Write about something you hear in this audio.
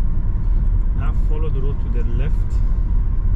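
A man speaks briefly and calmly from close by.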